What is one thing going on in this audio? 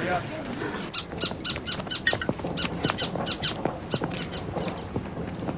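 Footsteps crunch on gravel outside.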